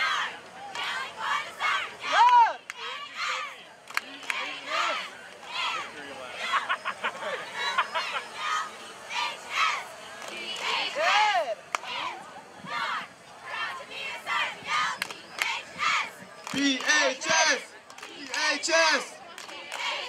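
A group of young women shout a cheer in unison outdoors, at a distance.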